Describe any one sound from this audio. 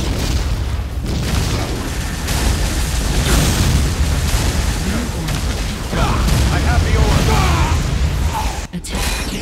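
A heavy gun fires rapid bursts.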